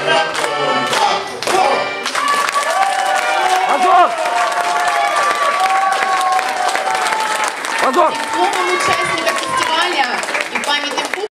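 An accordion plays a lively tune.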